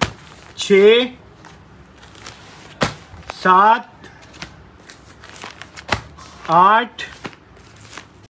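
Plastic packaging rustles and crinkles as it is handled.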